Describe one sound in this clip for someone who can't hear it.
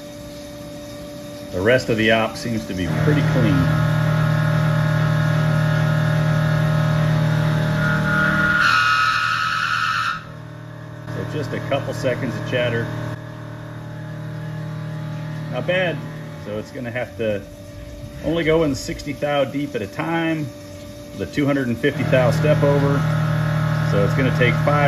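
A milling machine whirs steadily as its cutter grinds into metal.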